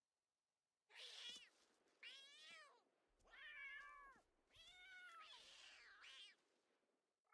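Cats yowl and screech faintly while fighting.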